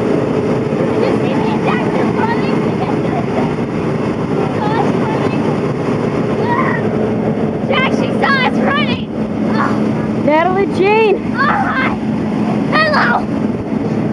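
Young children talk and shout excitedly close by.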